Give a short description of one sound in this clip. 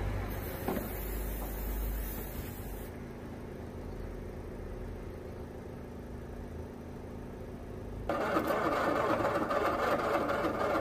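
Metal tools clink and scrape against a car engine.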